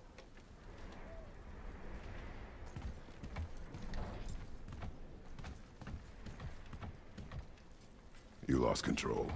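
Heavy footsteps thud on a wooden floor.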